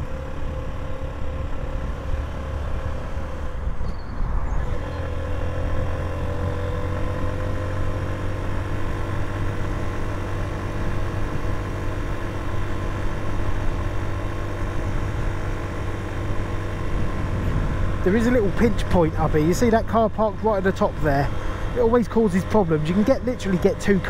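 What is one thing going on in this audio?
A motorcycle engine hums steadily while riding along.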